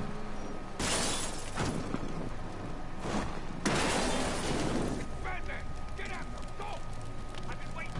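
A car engine roars as a car drives past.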